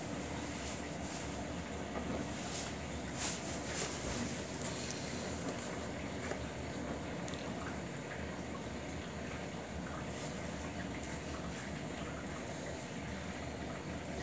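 A front-loading washing machine tumbles wet laundry in its drum.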